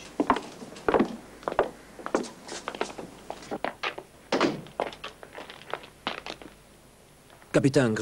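Men talk quietly in the background.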